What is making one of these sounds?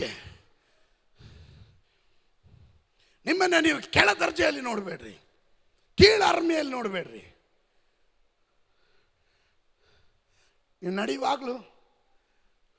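A man speaks emotionally into a microphone, in short bursts with long pauses.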